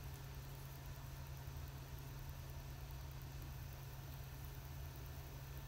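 Paper rustles softly as twine is wound around it.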